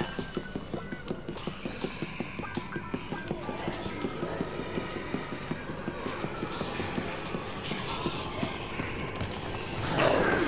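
Footsteps pad quickly and steadily across a hard floor.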